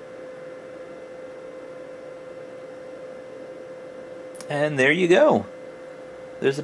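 A monitor hums steadily.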